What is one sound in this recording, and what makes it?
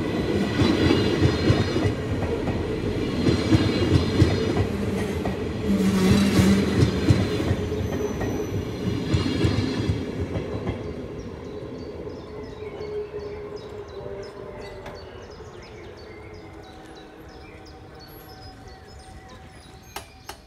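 A level crossing bell rings rapidly.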